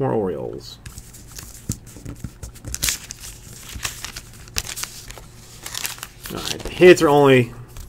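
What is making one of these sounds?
A plastic sleeve rustles and crinkles.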